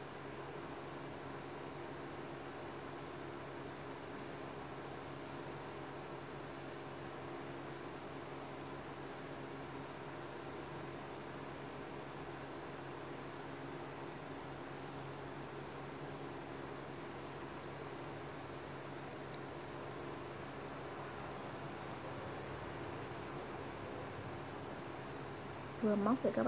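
A cord rustles softly as it is pulled through a sandal strap by hand.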